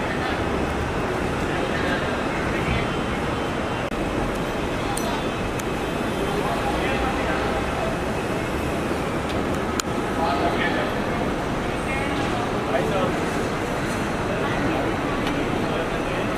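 A crowd of men and women chatter and call out close by.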